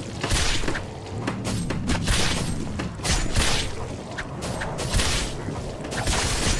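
Weapons strike and clash in rapid, noisy bursts during a fight.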